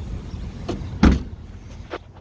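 A car tailgate thuds shut.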